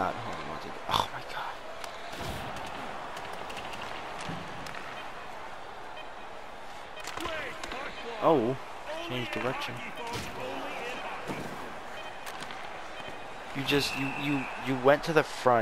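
A hockey stick smacks a puck with sharp clicks.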